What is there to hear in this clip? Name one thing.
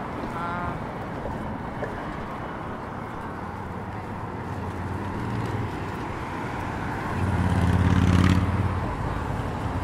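Road traffic rumbles past steadily.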